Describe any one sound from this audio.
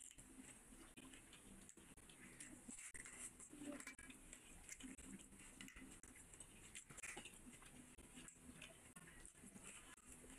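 A man chews and smacks his lips loudly close to a microphone.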